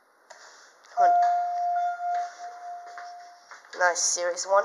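An elevator chime rings with a steady tone.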